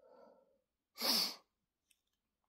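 An electric lighter buzzes briefly.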